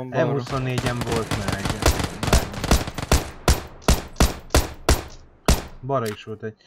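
A rifle fires a quick string of shots.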